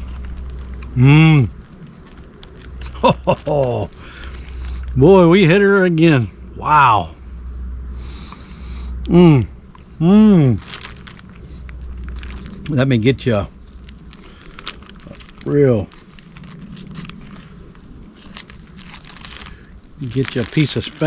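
An older man talks calmly and close by, in short bursts.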